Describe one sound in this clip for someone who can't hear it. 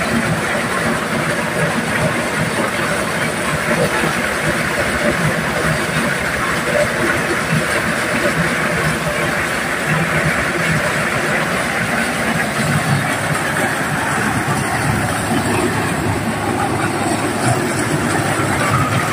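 Corn rattles and clatters through a threshing machine.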